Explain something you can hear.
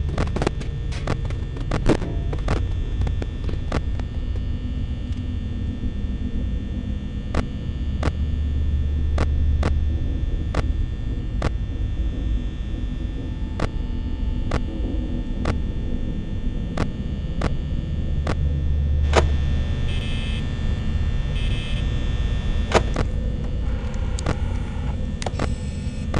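A steady low electrical hum and static hiss run throughout.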